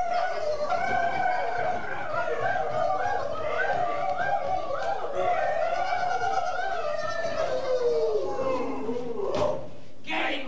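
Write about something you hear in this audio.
A man sings loudly in a long, wavering melody.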